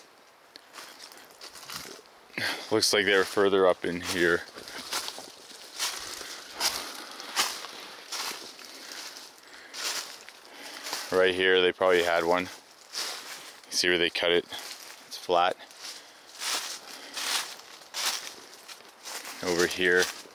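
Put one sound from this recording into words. Dry leaves crunch and rustle underfoot as someone walks.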